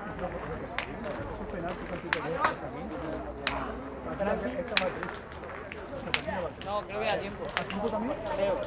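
Metal boules clack against each other on gravel.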